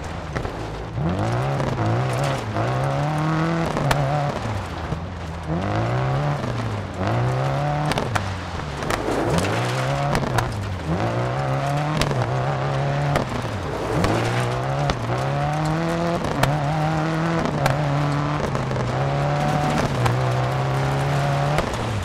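Tyres crunch and spray over loose gravel.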